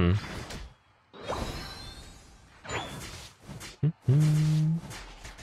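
A young man talks into a microphone close by.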